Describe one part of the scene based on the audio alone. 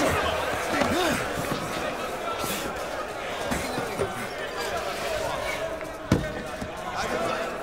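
A crowd of men shouts and cheers.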